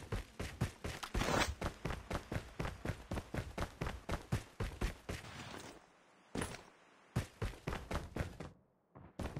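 Footsteps thud quickly and steadily on the ground.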